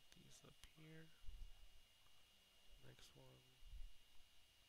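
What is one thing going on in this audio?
A man speaks briefly and quietly through a headset microphone over an online call.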